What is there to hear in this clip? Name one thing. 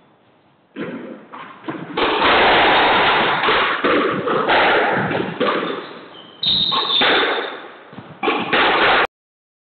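Sneakers squeak on a wooden court floor.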